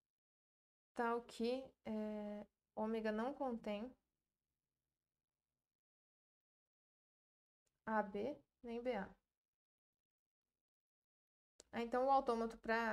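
A young woman speaks calmly into a close microphone, in short bursts with pauses.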